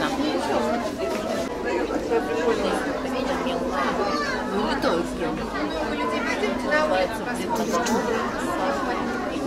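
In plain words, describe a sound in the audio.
A crowd of adults and children chatter nearby in an echoing hall.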